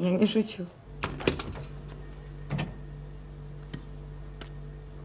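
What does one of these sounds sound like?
Items clink and rattle on refrigerator shelves.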